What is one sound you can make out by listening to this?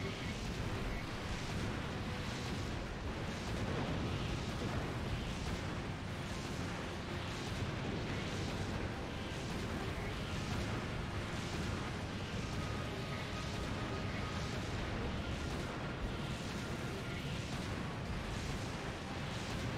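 Fiery blasts explode again and again with a loud roar.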